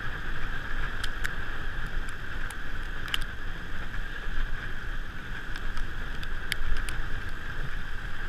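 Bicycle tyres crunch and hiss over packed snow.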